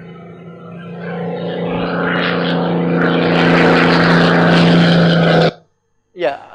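A propeller plane's engine roars overhead, growing louder.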